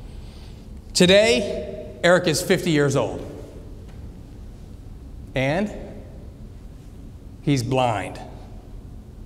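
A man speaks in short bursts with long pauses, through a microphone in a large room.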